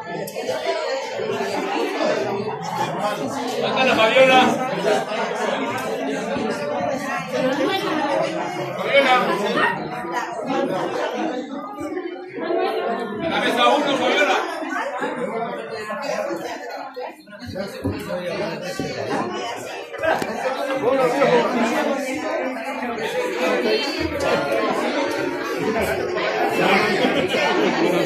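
A crowd of men and women chatter all around.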